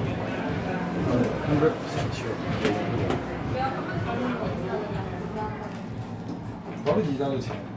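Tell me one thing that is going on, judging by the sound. A crowd of adults chatters nearby in a busy, echoing indoor space.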